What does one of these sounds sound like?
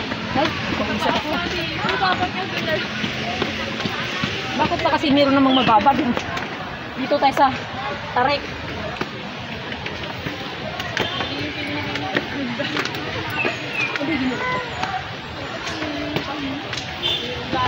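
Flip-flops slap on concrete steps as people climb.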